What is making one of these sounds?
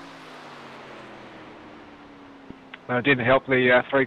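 A race car engine drones steadily and fades as the car moves away.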